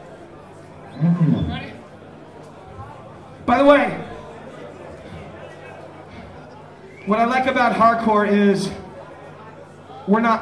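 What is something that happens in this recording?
A man shouts into a microphone over loudspeakers in a large hall.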